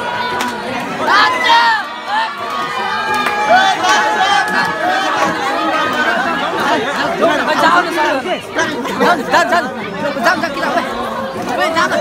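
A crowd of young women cheers and shouts excitedly.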